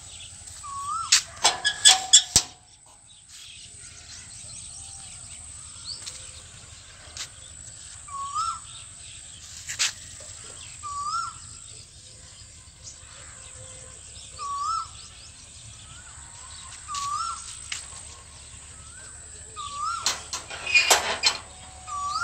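A peacock gives short, repeated calls.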